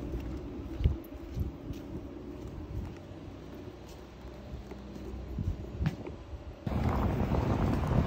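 Footsteps in sandals slap on pavement.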